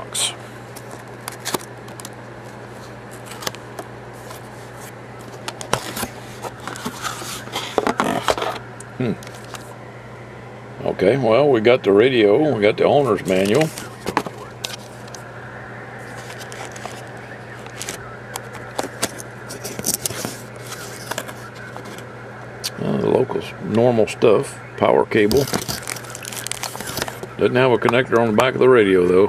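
Cardboard scrapes and knocks as a box is opened and handled.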